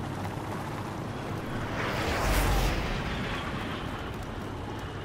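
A helicopter flies past overhead, its rotor thudding and then fading.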